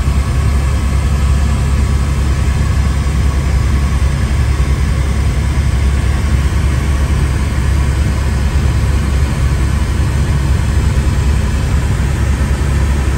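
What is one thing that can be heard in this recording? A helicopter engine and rotor roar loudly and steadily from inside the cabin.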